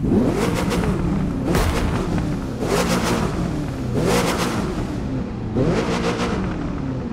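A sports car engine revs up and down repeatedly, loud and close.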